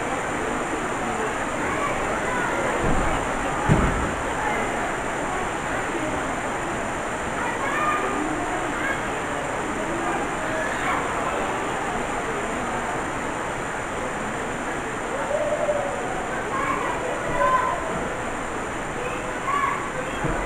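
A crowd murmurs and shouts in an echoing hall.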